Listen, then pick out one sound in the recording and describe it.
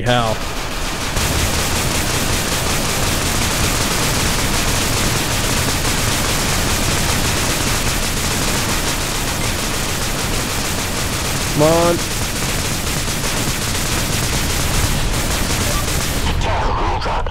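A heavy energy weapon roars and hisses steadily.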